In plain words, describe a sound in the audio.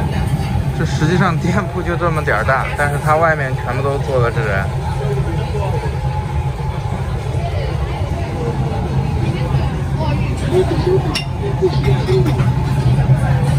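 A woman talks nearby.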